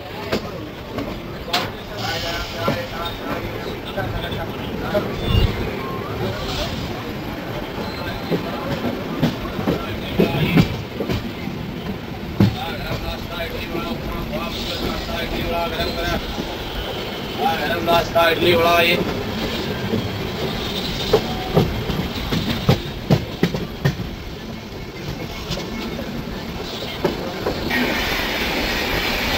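A train rumbles and clatters steadily over the rails.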